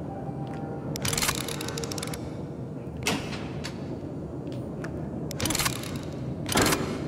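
Metal parts of a mechanism click and rattle in short bursts.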